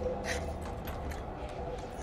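A door handle rattles.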